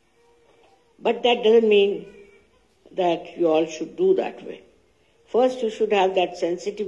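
An elderly woman speaks slowly and calmly through a laptop's loudspeaker.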